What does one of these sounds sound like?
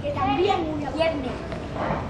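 A young girl reads out calmly.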